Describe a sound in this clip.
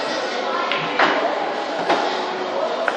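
Billiard balls clack sharply together on a pool table.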